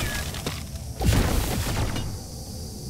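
An explosion bursts with a loud crack.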